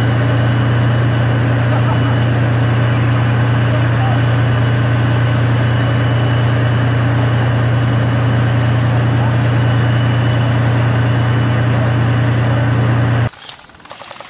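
A tank's diesel engine roars loudly and steadily close by.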